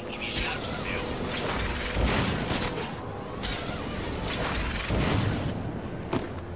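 Wind rushes loudly past in strong gusts.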